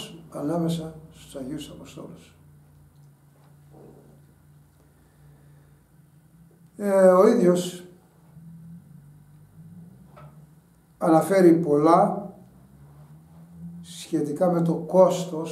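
An elderly man speaks calmly and slowly, close by, in bursts with pauses.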